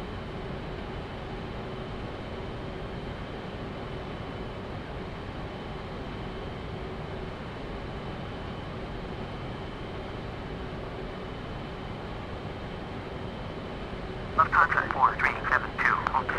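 A jet engine hums steadily as an airliner taxis.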